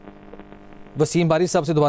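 A man speaks clearly into a microphone, like a news presenter.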